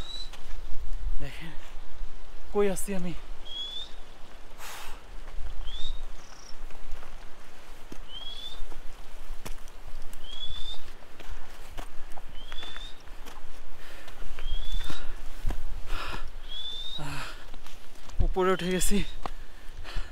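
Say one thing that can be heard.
A young man speaks close to a microphone outdoors.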